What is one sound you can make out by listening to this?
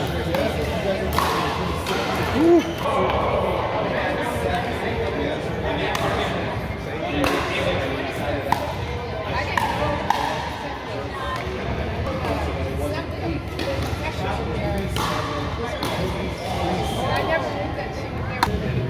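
Adult players call out and chatter in an echoing hall.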